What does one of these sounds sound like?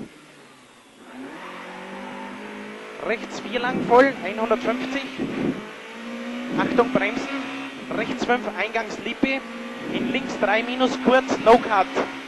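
A car engine revs hard and changes gear, heard from inside the car.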